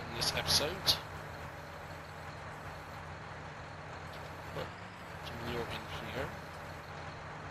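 A loader arm whirs as it lifts.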